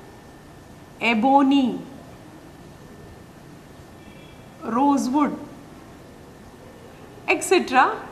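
A woman speaks calmly in short phrases, close by.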